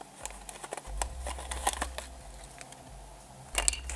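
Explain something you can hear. Paper tears as a strip is pulled off a box.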